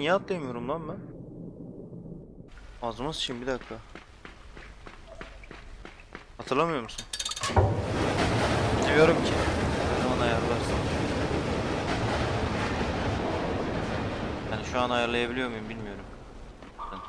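A young man talks with animation close to a headset microphone.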